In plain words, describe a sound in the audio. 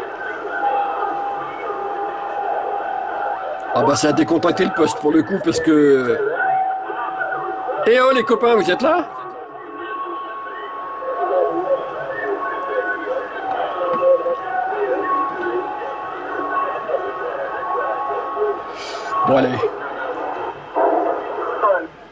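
A radio receiver hisses and crackles with static.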